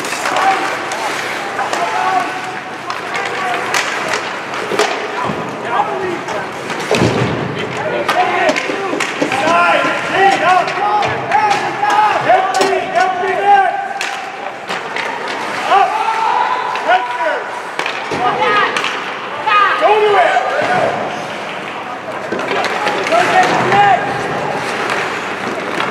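Young men shout to each other across an echoing rink.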